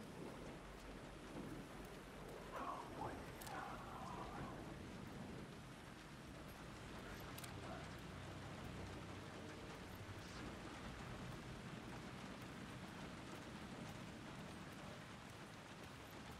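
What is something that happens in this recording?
Footsteps splash on a wet street.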